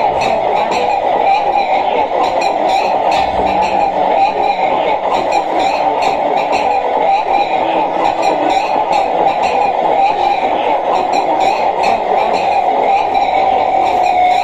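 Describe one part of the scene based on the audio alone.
Dense electronic music drones and buzzes steadily from loudspeakers.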